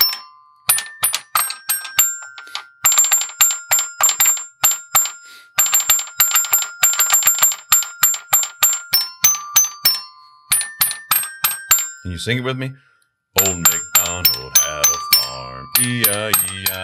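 A toy xylophone rings out with bright metal notes, tapped quickly one after another.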